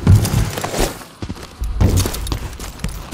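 Boots land on the ground with a heavy thud.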